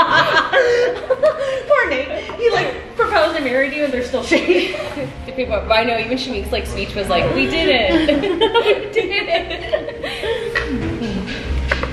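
Young women talk and laugh with animation close by.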